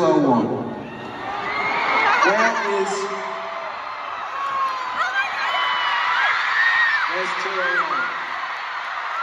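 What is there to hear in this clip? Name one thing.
A large crowd cheers and screams in a big echoing arena.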